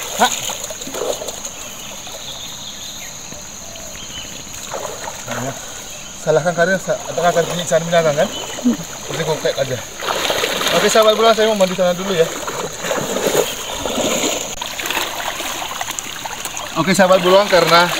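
Water splashes and swirls around a man wading through a river.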